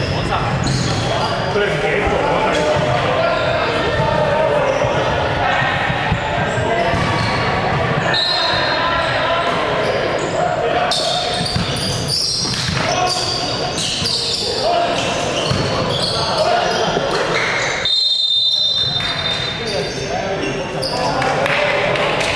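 Young men shout to each other across an echoing court.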